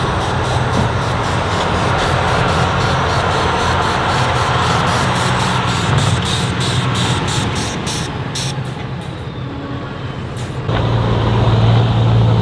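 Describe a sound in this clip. A heavy truck engine roars and labours up close.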